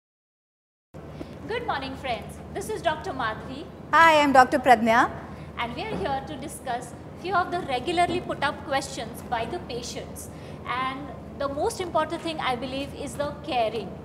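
A second woman answers in conversation.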